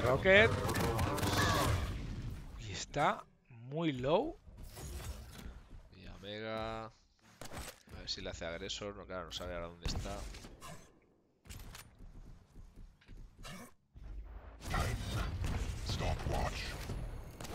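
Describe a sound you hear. A game gun fires rapid shots.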